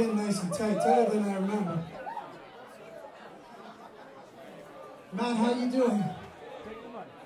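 A man sings into a microphone, amplified through loudspeakers.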